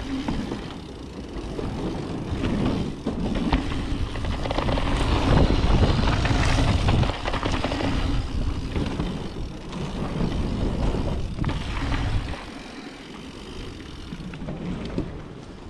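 Bicycle tyres clatter over wooden boards.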